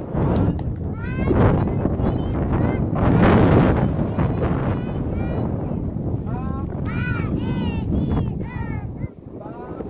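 Young children sing together in high voices close by.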